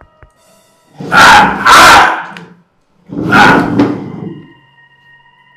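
A man groans loudly in dismay, close by.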